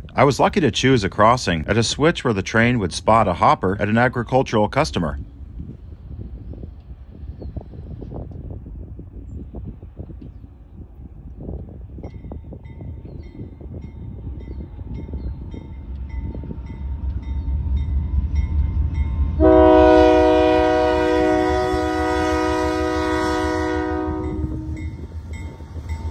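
A diesel locomotive rumbles as it approaches and grows louder.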